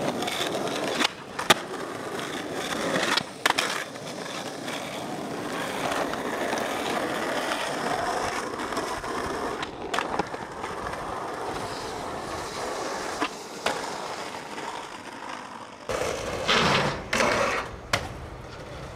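A skateboard's tail snaps and clacks against the ground.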